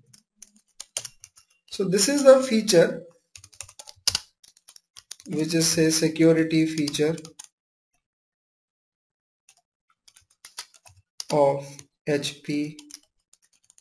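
Keyboard keys click in quick bursts as someone types.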